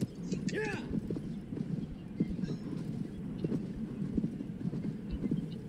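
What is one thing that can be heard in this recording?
A horse's hooves thud steadily on grass.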